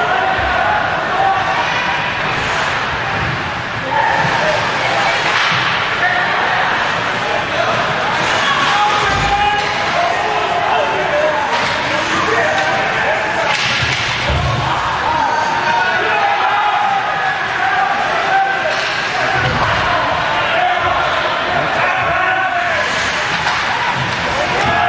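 A crowd murmurs in a large echoing rink.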